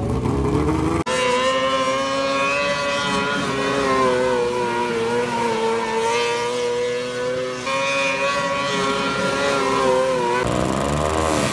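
A race car engine roars loudly at high speed.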